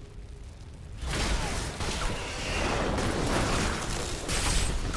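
Magical blasts burst and rumble.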